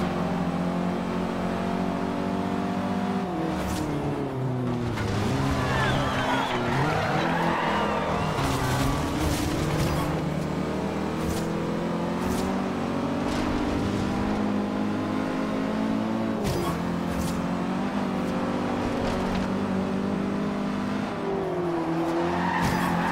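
A racing car engine roars, rising and falling as it shifts gears.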